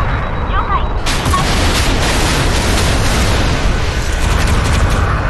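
Aircraft cannons fire in rapid bursts.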